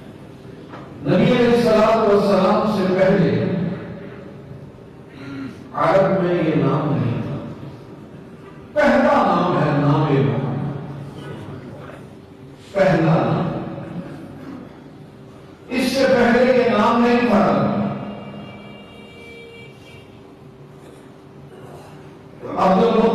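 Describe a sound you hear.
An elderly man preaches with feeling into a microphone, in bursts with pauses, in an echoing room.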